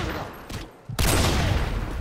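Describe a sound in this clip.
A rifle fires a loud, sharp shot.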